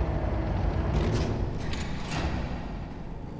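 Footsteps fall on a hard floor.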